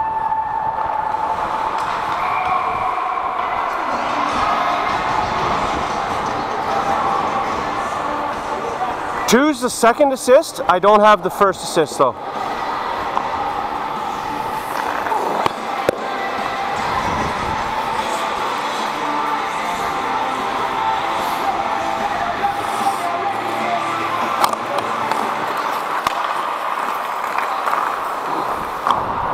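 Skate blades scrape and swish across ice in a large echoing rink.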